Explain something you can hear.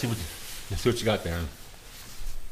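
A man speaks briefly and loudly up close.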